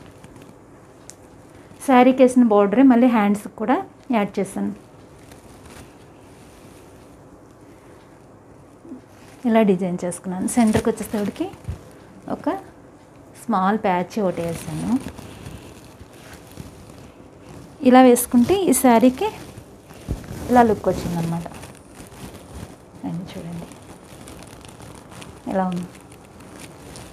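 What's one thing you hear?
Fabric rustles as a woman handles it.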